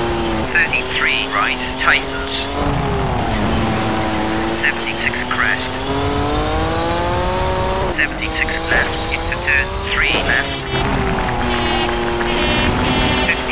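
Gravel sprays and crunches under the tyres.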